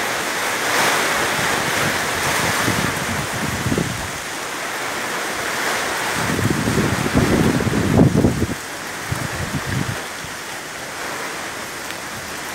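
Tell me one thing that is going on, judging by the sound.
Strong wind roars in gusts through trees.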